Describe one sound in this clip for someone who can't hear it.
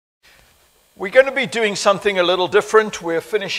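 An elderly man speaks calmly into a microphone.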